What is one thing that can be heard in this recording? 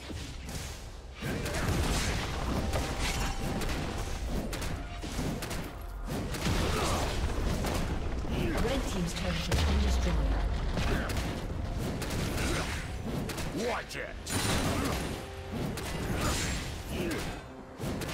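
Game characters clash in battle with bursts of spell blasts and hits.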